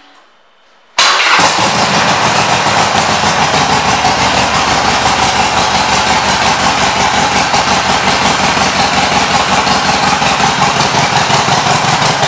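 A motorcycle engine starts and idles with a loud, steady rumble.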